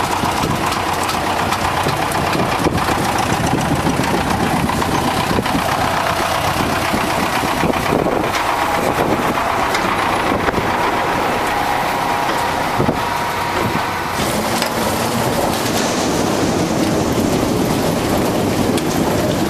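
Potatoes rumble and thud as they tumble off a conveyor into a trailer.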